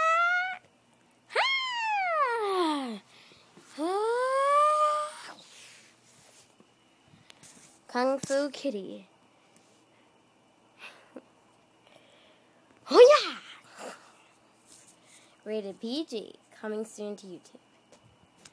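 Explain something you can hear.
A cat meows loudly, again and again, close by.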